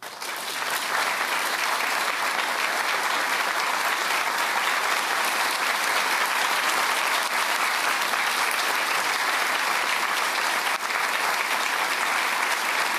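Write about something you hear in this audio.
A large audience applauds steadily in a big echoing hall.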